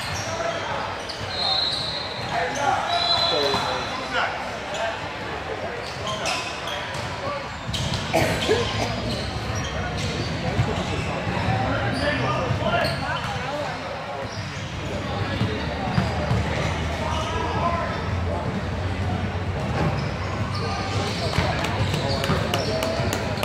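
Young players shout to each other across the court.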